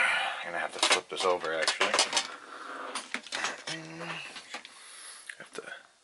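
A circuit board knocks and clatters against a metal plate.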